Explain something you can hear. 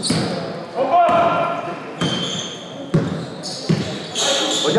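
A basketball bounces on a hard floor in a large echoing hall.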